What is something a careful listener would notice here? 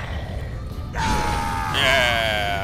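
A magical blast whooshes and rings out.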